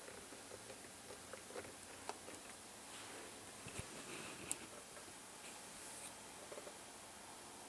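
Small objects tap and click lightly on a wooden tabletop.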